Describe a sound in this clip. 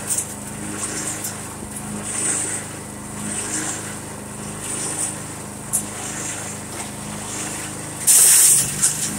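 A wood chipper's small gasoline engine runs.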